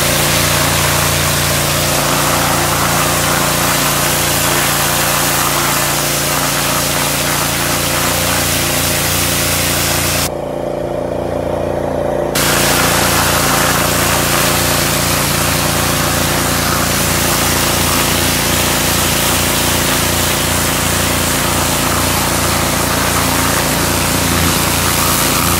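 A pressure washer sprays water hard against a wooden fence with a loud, steady hiss.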